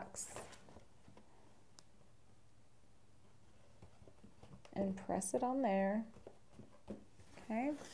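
A hand rubs and presses paper onto cardboard with a soft rustle.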